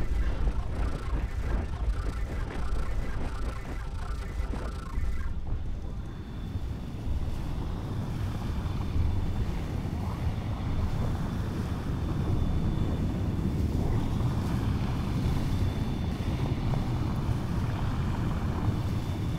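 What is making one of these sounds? A huge wave roars and rumbles deeply, growing louder as it nears.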